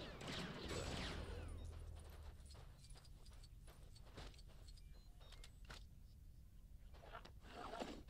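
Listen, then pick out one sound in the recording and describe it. Blaster shots and small explosions go off in a video game.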